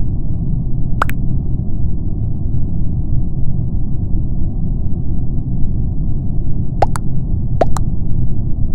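Short electronic blips sound a few times.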